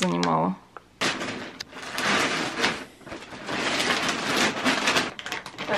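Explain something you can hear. Plastic crinkles and rustles as it is handled.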